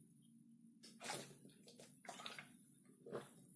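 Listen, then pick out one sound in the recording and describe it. A young man gulps water.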